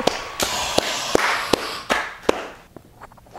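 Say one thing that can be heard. A man claps his hands steadily.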